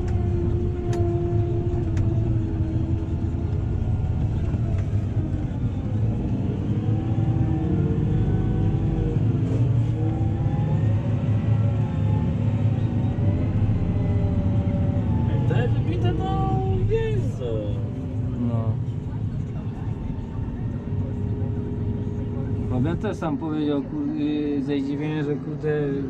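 A tractor engine rumbles steadily from inside the cab, its pitch rising and falling as it drives.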